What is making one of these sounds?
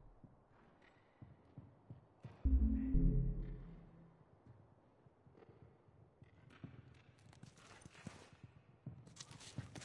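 Footsteps shuffle softly on pavement.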